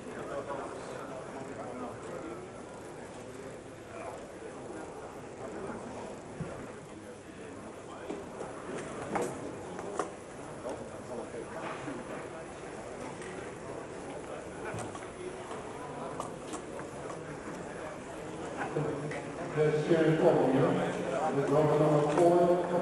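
A crowd of spectators chatters indoors.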